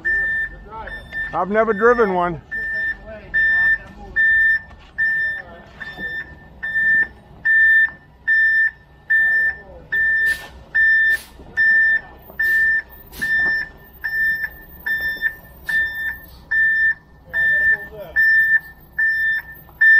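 A truck's reversing alarm beeps steadily and repeatedly.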